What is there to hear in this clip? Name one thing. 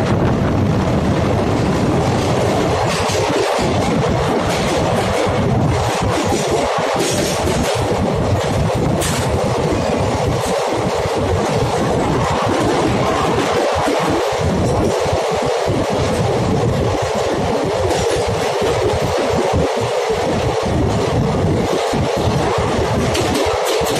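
A train rumbles loudly through a tunnel, its noise echoing off close walls.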